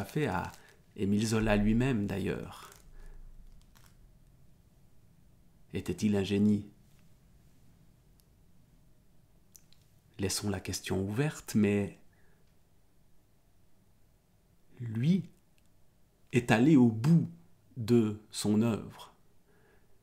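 A man talks calmly and with animation close to a microphone, with short pauses.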